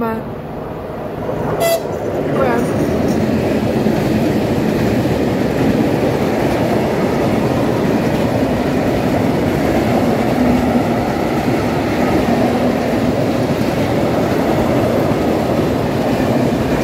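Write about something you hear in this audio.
A freight train rumbles past close by, its wheels clattering over the rails.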